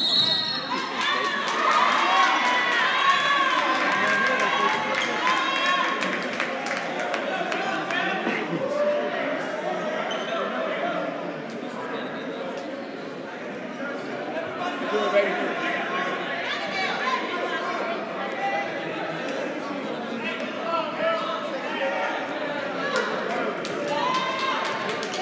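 A crowd of spectators murmurs and calls out in an echoing hall.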